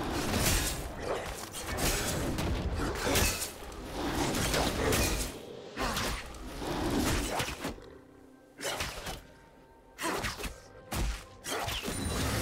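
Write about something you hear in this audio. Game characters clash with sharp magical hits and whooshes.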